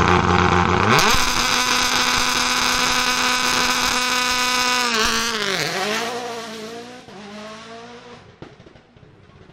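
A rally car engine roars away, its pitch rising and falling as it fades.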